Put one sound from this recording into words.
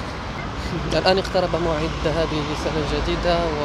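A young man talks close by, outdoors.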